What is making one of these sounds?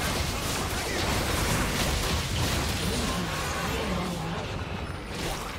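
Game spell effects crackle and boom in a fight.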